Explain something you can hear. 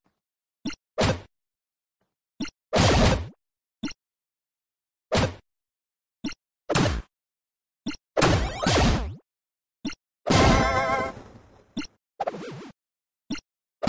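Short chiptune-style game sound effects of attacks and hits play in bursts.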